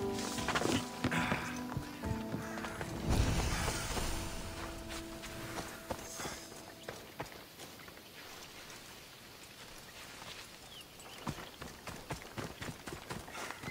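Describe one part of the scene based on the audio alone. Footsteps crunch through dry grass and over rocks.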